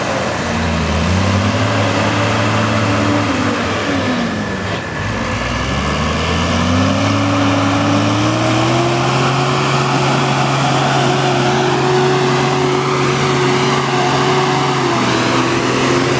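Mud and water splash around truck tyres.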